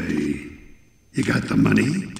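A second man asks questions calmly.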